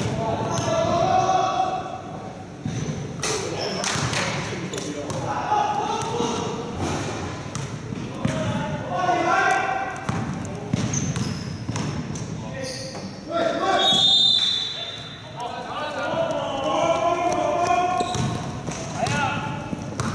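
Young men call out to each other across a large echoing hall.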